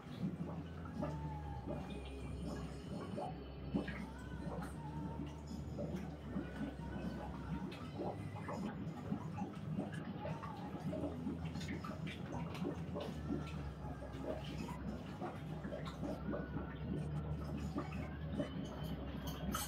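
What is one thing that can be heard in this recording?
Things knock and clatter inside a cabinet.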